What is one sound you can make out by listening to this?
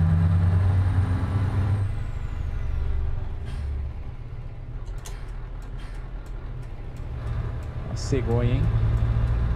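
A truck engine rumbles low and steady, swelling and easing as it drives.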